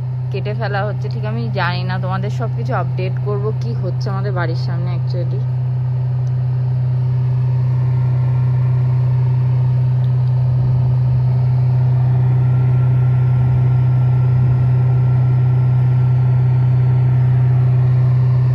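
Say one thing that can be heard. A wood chipper drones steadily outdoors, heard through a window.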